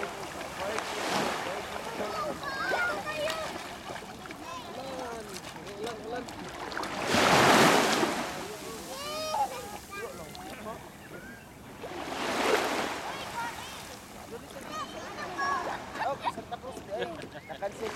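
Young children shout and chatter playfully nearby.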